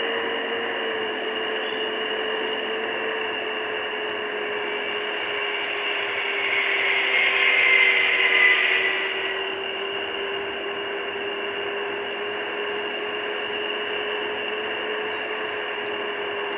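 Tyres roll on a road.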